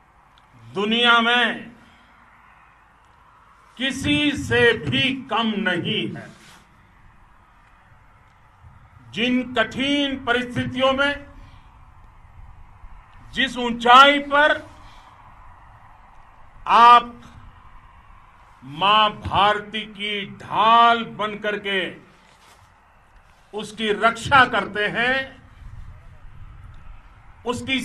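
An elderly man speaks forcefully into a microphone outdoors, in bursts with pauses.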